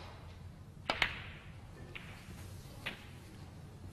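Snooker balls knock against each other on the table.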